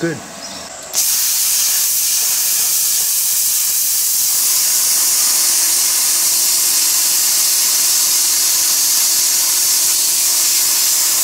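A plasma cutter hisses and roars steadily as it cuts through metal.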